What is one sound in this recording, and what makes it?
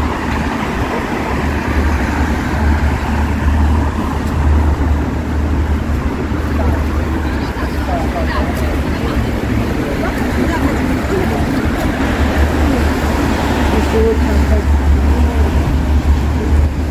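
City traffic hums steadily on a wet street nearby.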